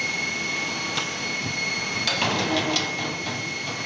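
Metal parts clack as a mould opens.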